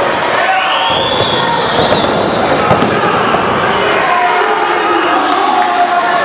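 Bodies thud onto a wrestling mat.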